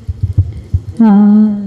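A woman begins singing a long, steady note through a microphone.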